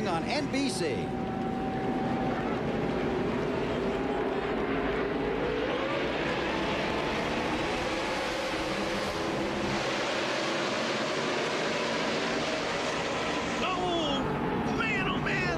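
Many race car engines roar loudly as the cars speed past.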